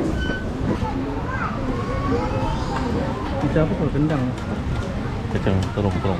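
A serving spoon clinks against metal trays.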